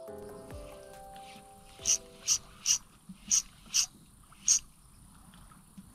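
A fishing reel clicks and whirs as its handle is worked.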